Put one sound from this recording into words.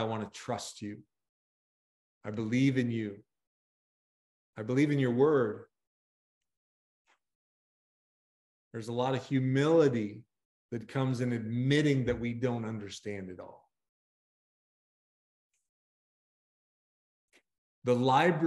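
A middle-aged man speaks calmly over an online call, pausing often.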